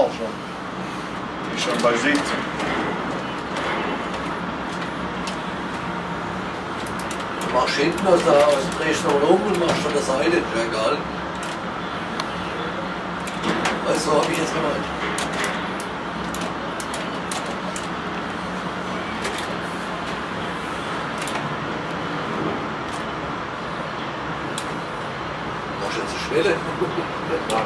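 Sawmill machinery hums.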